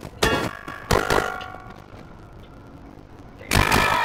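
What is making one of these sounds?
A metal frying pan clangs as it strikes someone.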